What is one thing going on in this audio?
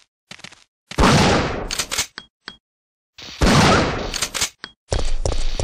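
A shotgun blasts loudly, and the blasts echo.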